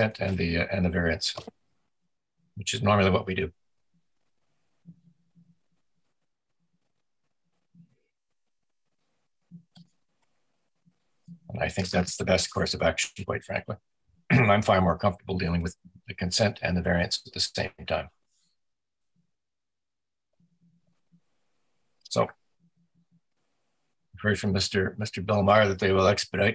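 An older man speaks calmly through an online call microphone.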